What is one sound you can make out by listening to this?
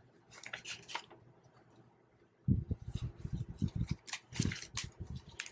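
Paper banknotes rustle and crinkle as they are counted by hand.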